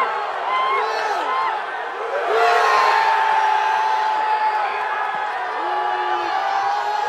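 Many fans chant and sing together in a large echoing stadium.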